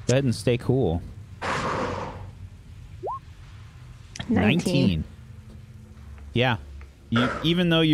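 Several men and women talk with animation over an online call.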